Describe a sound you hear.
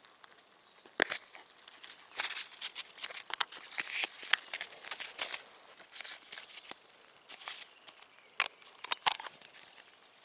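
Metal lids clink and scrape in someone's hands.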